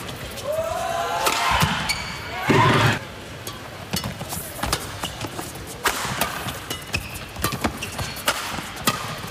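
Shuttlecocks are struck sharply with rackets in a fast rally.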